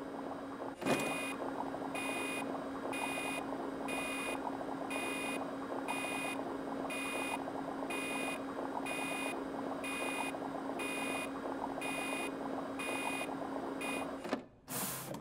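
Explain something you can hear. Liquid drains and bubbles steadily in a machine.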